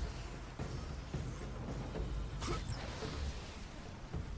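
A magical energy blast crackles and roars.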